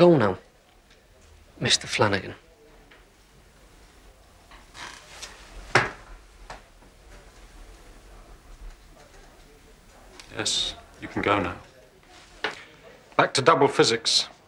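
A man speaks quietly and tensely nearby.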